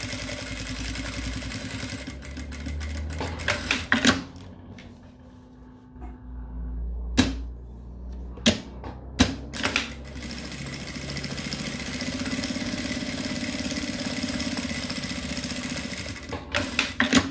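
A sewing machine runs with a steady, fast whirring hum.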